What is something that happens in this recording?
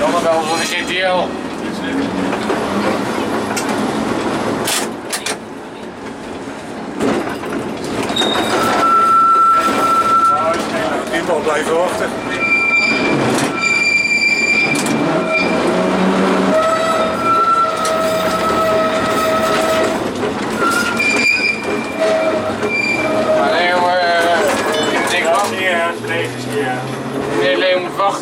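A vintage tram rumbles along steel rails.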